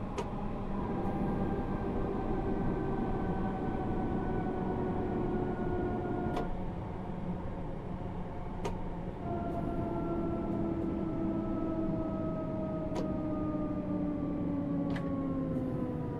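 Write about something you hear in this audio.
Train brakes whine with a falling pitch.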